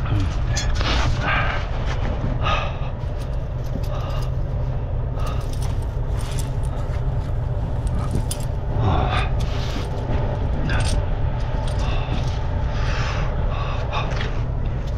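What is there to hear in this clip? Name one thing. Metal chains clink and rattle.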